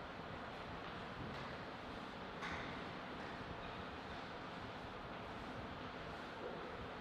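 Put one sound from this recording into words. Footsteps tread lightly on a hard floor.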